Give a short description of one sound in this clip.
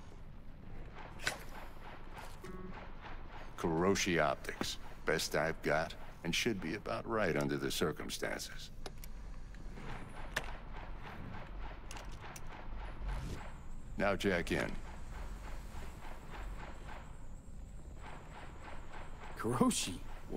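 Metal parts click and clack as a man handles a gun.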